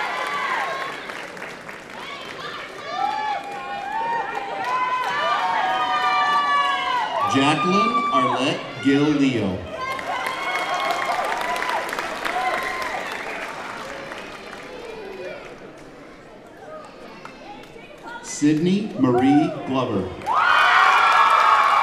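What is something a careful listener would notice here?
A crowd cheers and whoops loudly in a large echoing hall.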